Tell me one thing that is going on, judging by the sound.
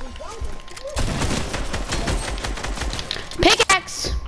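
A shotgun fires.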